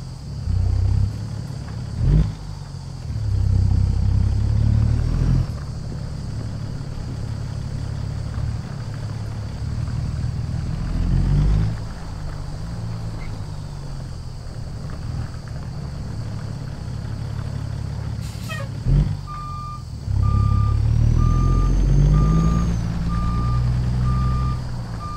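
A diesel semi-truck's inline-six engine rumbles as the truck pulls away and moves through the gears.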